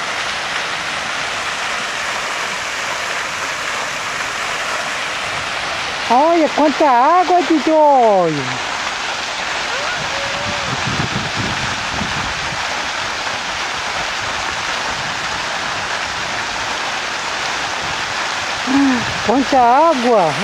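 Fountain water splashes steadily.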